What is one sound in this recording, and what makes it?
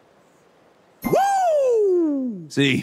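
A magic spell sounds with a loud tone that sweeps down in pitch.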